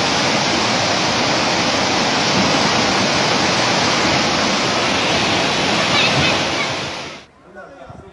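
Floodwater rushes loudly down a narrow street.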